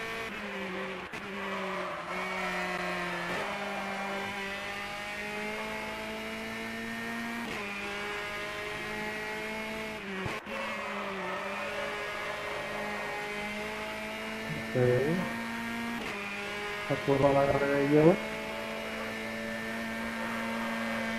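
A race car engine roars at high revs, dropping in pitch briefly as it shifts gears.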